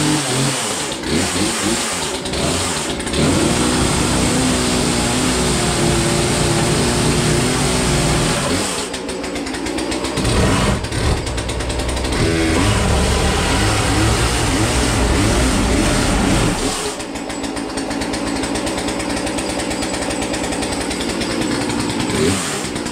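A chainsaw engine runs close by, revving up loudly and dropping back to a rough idle.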